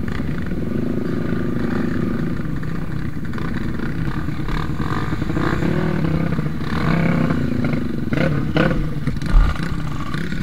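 Other dirt bike engines rumble nearby.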